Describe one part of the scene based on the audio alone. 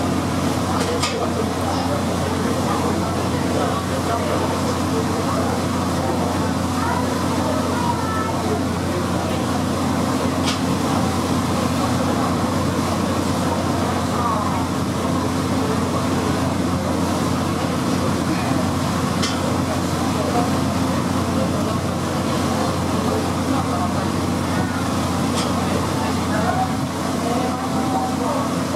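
A boat engine hums steadily and low.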